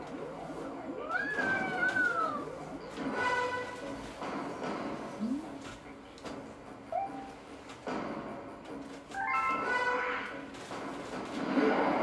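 Video game music plays through a television's speakers.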